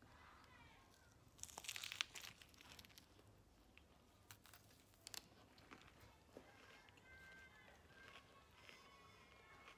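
A young woman bites into a crunchy leafy wrap and chews.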